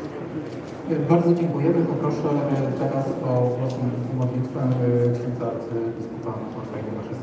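A man speaks formally through a loudspeaker in a large echoing hall.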